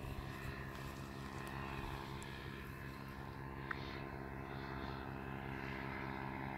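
A paramotor engine drones steadily in the distance overhead.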